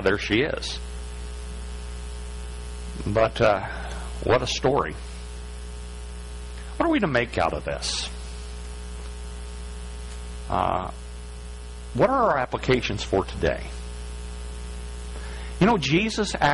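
A middle-aged man speaks with animation through a microphone, in short bursts with pauses.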